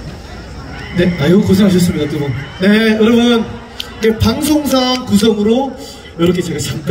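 A man sings into a microphone over a loudspeaker, in a large, echoing space.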